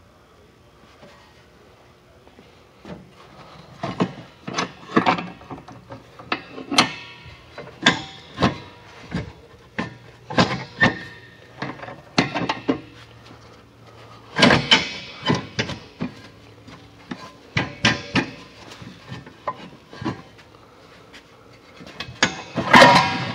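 A cloth rubs and wipes against a metal tank.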